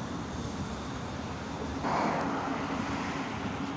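An electric tram hums as it pulls in and stops.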